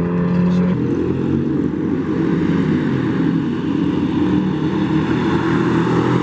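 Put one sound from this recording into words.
Car engines roar in the distance.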